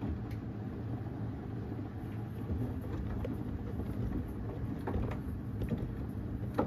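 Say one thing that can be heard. A washing machine drum turns with a steady low rumble.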